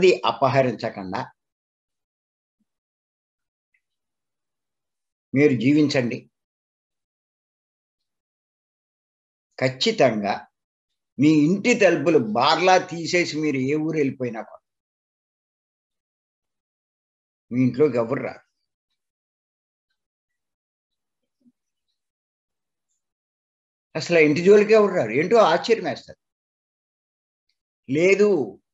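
An elderly man speaks calmly in bursts with pauses, heard through an online call.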